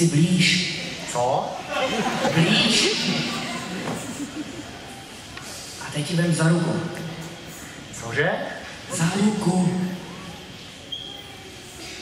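A young woman speaks in a large echoing hall.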